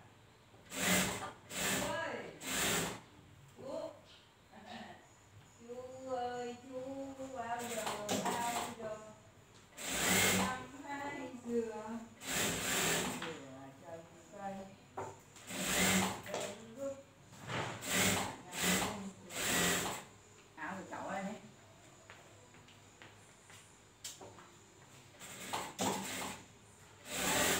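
A sewing machine runs in short bursts, whirring and rattling.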